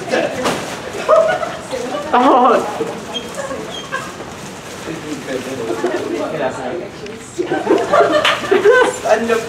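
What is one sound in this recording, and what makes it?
Footsteps shuffle along a hard floor.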